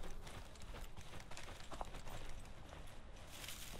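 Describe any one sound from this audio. Footsteps rustle through leafy bushes.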